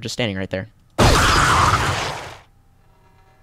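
A tank cannon fires with a loud, rushing blast.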